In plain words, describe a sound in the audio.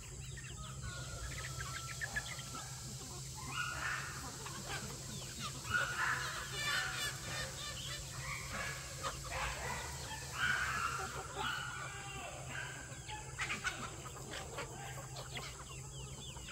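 A large flock of chickens clucks and cackles outdoors.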